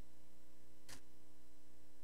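Papers rustle briefly close to a microphone.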